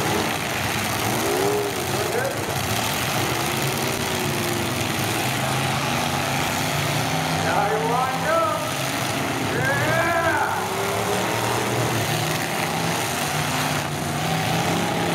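Car engines roar and rev loudly outdoors.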